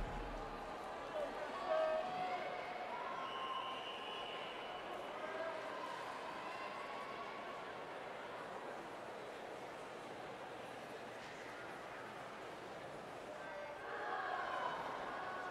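A crowd chatters and calls out in a large echoing hall.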